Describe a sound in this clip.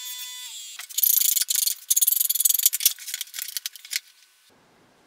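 A chisel scrapes across wood.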